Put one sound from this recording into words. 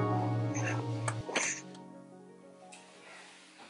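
A baby coos softly close by.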